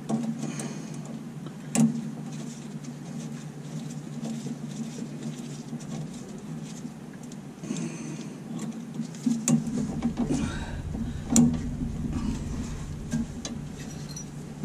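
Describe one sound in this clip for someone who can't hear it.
A tool clicks and taps against metal close by.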